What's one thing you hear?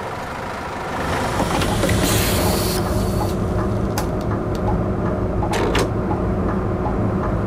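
A diesel city bus engine rumbles from inside the cab.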